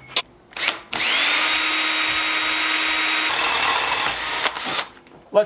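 An electric drill whirs steadily as it bores into metal.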